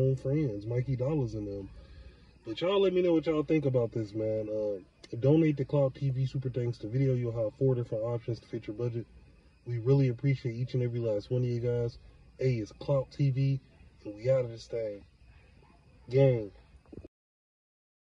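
A man talks animatedly close to a phone microphone.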